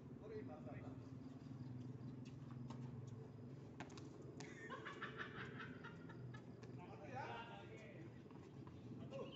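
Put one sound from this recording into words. Tennis balls are struck with rackets in a rally.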